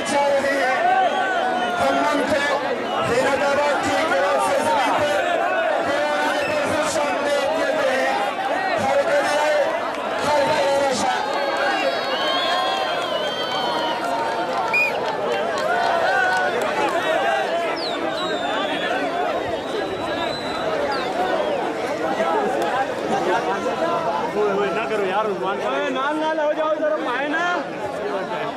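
A large crowd of men chatters and shouts loudly outdoors.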